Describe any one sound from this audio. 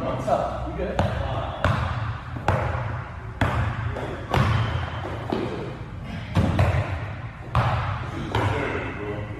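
A basketball bounces on a wooden court with sharp thuds.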